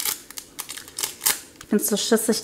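A hobby knife slits a plastic wrapper.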